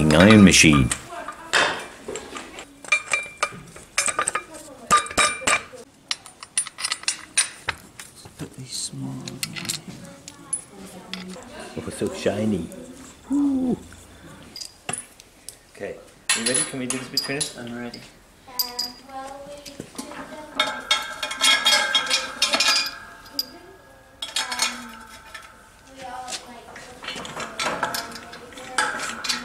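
Metal parts clink and knock as they are handled.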